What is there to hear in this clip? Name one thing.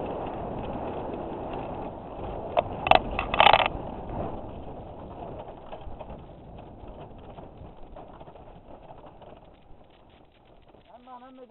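Wind roars loudly against a microphone and slowly fades.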